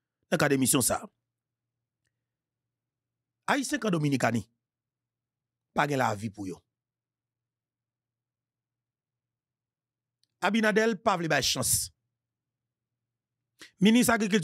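A man speaks with animation into a close microphone in short bursts, heard over an online call.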